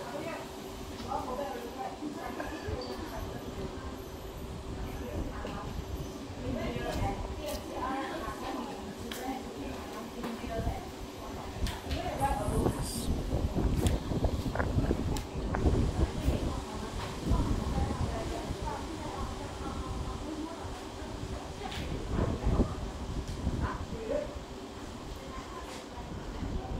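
Wind blows outdoors, buffeting strongly at times.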